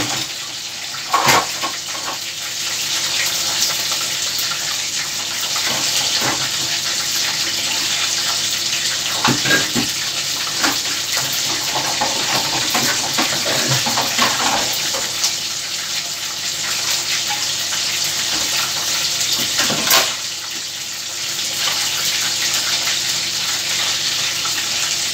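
Water runs into a metal sink.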